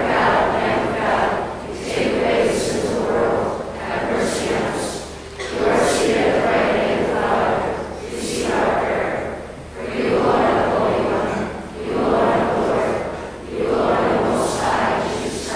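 An elderly man speaks slowly through a microphone in a large echoing hall.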